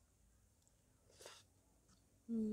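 A woman slurps noodles loudly.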